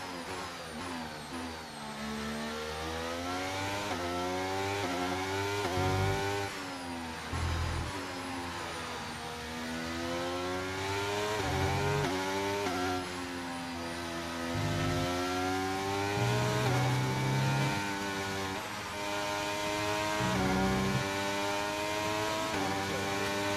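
A racing car engine revs high and rises and falls in pitch as gears shift.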